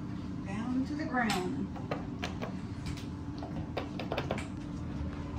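Fingers tap elevator buttons with soft clicks.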